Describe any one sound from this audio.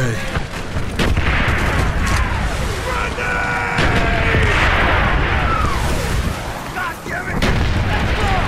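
Rifle shots crack in short bursts.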